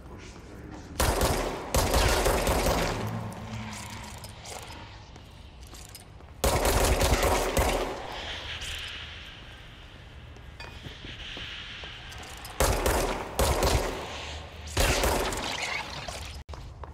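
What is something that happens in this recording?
Debris shatters and crackles as objects explode.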